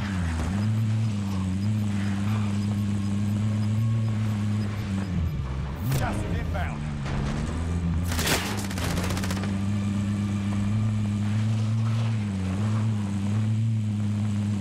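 Tyres crunch over rough ground.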